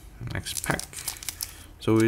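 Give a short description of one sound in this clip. Scissors snip through a foil wrapper.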